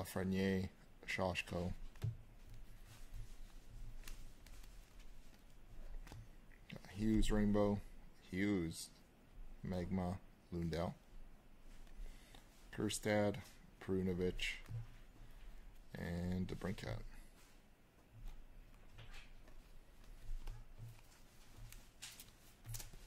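Cards slide and rustle softly between hands.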